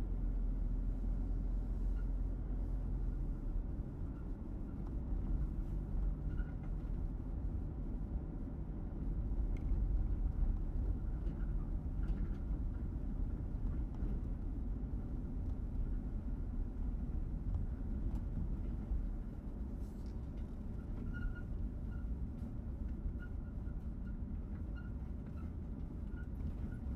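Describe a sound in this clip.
A car engine hums steadily and low.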